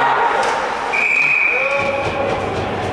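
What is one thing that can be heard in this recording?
A referee's whistle blows a short, shrill blast.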